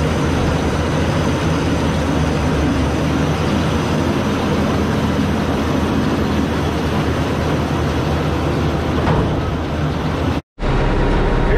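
A baler's machinery rumbles and clatters steadily outdoors.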